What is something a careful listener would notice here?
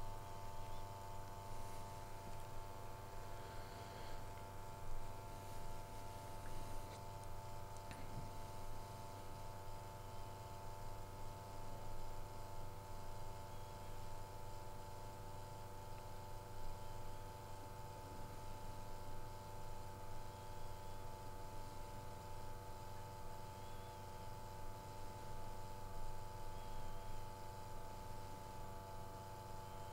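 A small electric pump hums steadily.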